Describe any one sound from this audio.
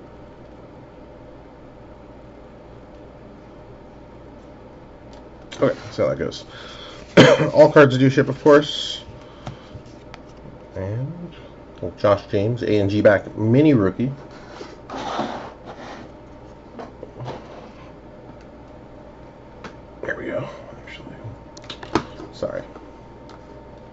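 Trading cards rustle and slide against each other in a hand.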